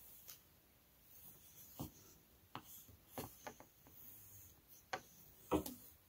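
A wooden shuttle knocks lightly against threads.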